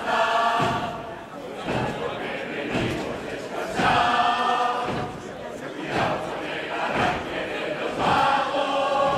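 A large group of men and women sing together through loudspeakers in a large hall.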